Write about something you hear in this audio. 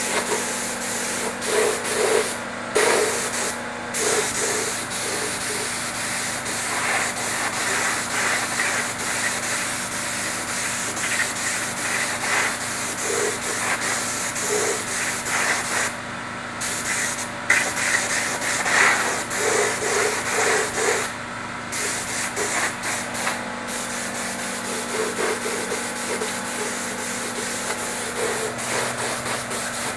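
A spray gun hisses steadily, pausing briefly now and then.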